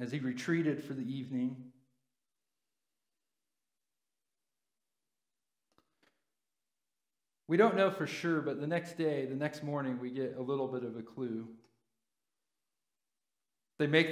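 A man speaks calmly through a microphone, reading aloud with pauses.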